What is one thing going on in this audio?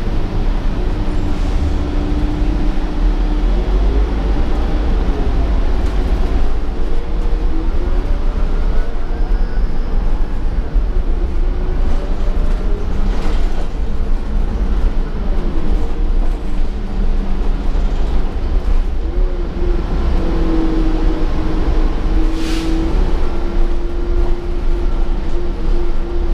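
A bus engine hums and whines steadily as the bus drives.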